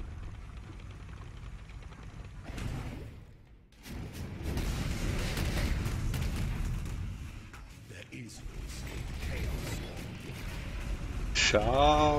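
Fiery blasts and magic spells boom and crackle in a video game.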